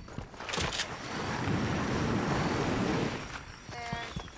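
A figure slides noisily down a grassy slope.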